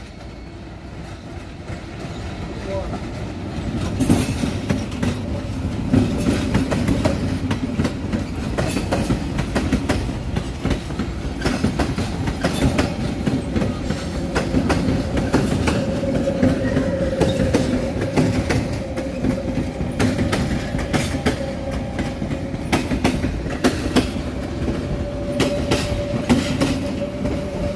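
A train rumbles past on the tracks close by.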